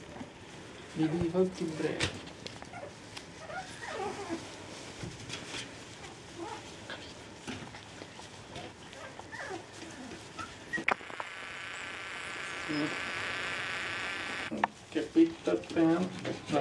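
Puppies whimper and yelp close by.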